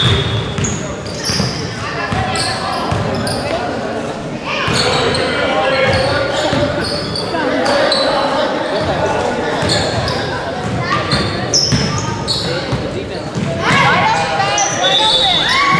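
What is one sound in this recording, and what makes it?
A crowd of spectators chatters and calls out in the background.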